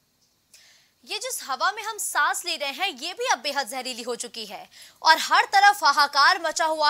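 A young woman reads out the news with animation through a microphone.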